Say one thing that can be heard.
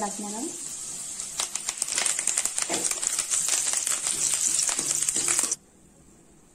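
Oil sizzles and crackles loudly in a hot pan.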